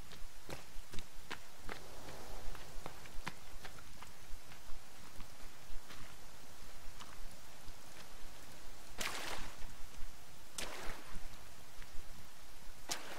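Footsteps rustle through grass and tap over rocks.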